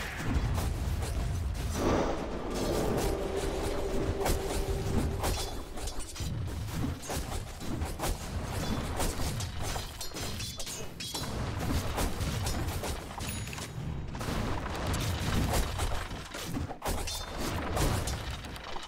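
Spell effects crackle and whoosh as game characters fight.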